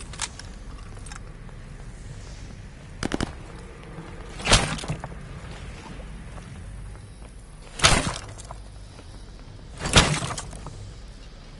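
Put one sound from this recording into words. Gunshots ring out in short, sharp bursts with a booming echo.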